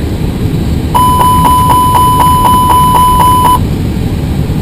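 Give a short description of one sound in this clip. A cockpit warning bell rings in fast repeated pulses.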